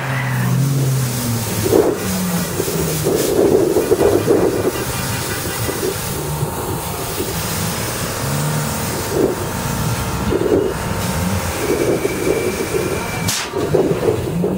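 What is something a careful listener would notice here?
Car engines rev loudly nearby, outdoors.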